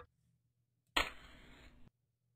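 A match strikes and flares into flame.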